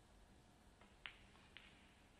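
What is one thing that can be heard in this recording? A snooker cue tip strikes the cue ball with a sharp click.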